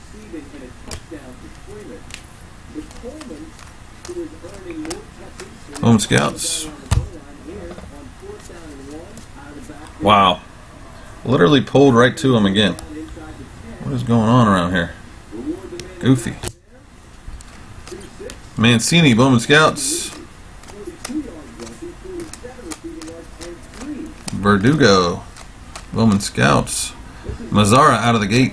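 Trading cards rustle and flick as they are shuffled through by hand.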